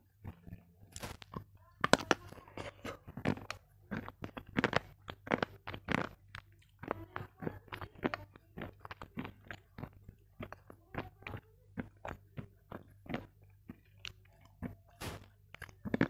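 A young woman chews and crunches loudly and close up.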